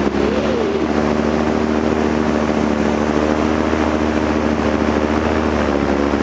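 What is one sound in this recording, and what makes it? Wind rushes past in flight.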